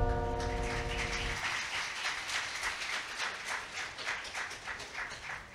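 A choir of young women and men sings together through microphones.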